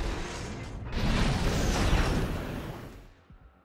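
A mechanical blade swings with a loud whoosh.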